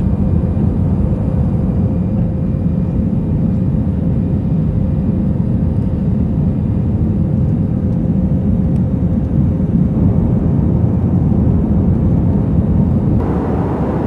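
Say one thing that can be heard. Jet engines roar steadily, heard from inside an aircraft cabin.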